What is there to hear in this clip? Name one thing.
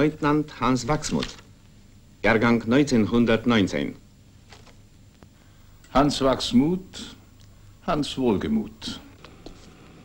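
A middle-aged man reads out calmly, close by.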